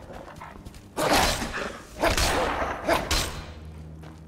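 Sword blows clash and thud in a fight.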